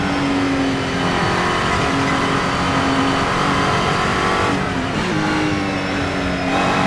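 A racing car engine roars loudly and revs up and down.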